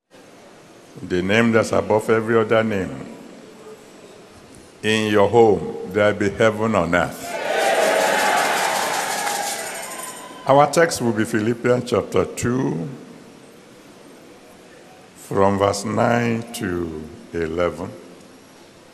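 An elderly man preaches with animation through a microphone in a large echoing hall.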